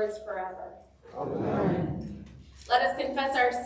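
A small group of people reads aloud together in reply.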